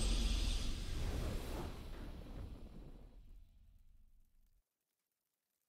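A triumphant game fanfare booms and slowly fades out.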